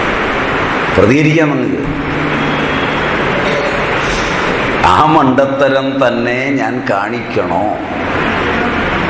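A man laughs softly close by.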